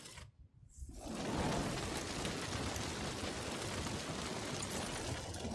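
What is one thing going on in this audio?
A fire roars and crackles loudly.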